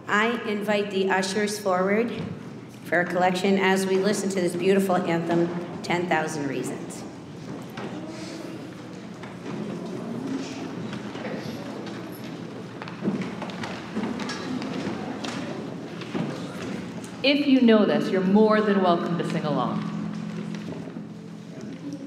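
An adult woman speaks calmly through a microphone in a large echoing hall.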